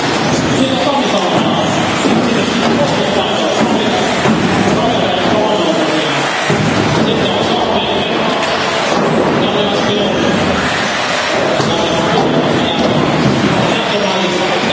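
Small electric motors of toy race cars whine as the cars speed around a track in a large echoing hall.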